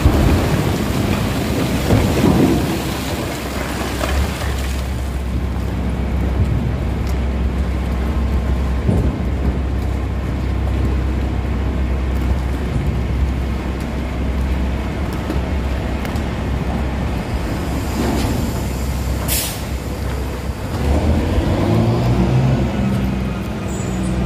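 A heavy machine hums with a steady low drone.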